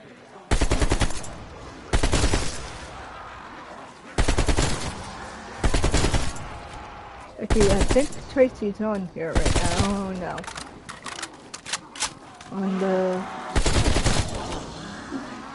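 Rapid bursts of automatic gunfire ring out close by.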